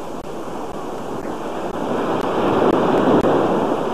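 Small waves wash gently onto a beach.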